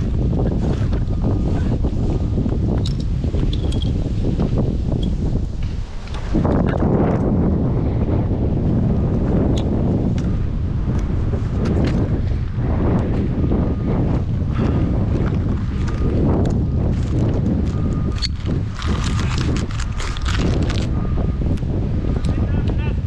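Metal clips and carabiners clink and rattle.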